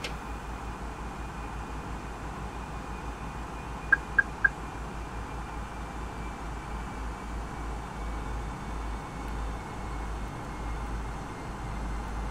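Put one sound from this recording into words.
A steady low engine and airflow roar.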